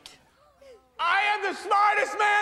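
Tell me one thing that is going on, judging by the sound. A man shouts with excitement.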